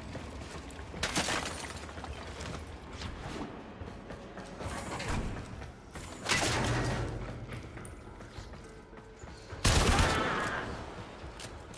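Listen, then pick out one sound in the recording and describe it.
Whooshing bursts rush past now and then.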